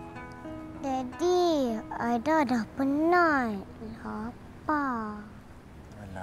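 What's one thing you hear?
A young girl speaks softly and close by.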